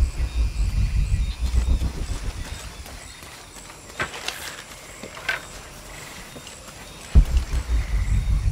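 Footsteps crunch on leaves and soil.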